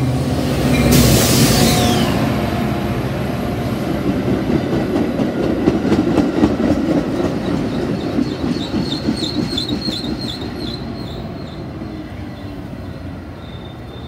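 Train wheels clatter and rattle loudly past at close range.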